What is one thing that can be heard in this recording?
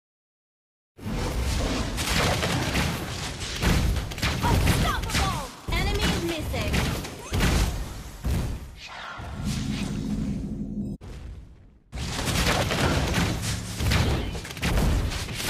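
Magic blasts and hits clash loudly in a fast game battle.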